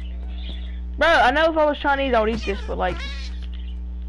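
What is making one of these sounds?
A cat meows several times.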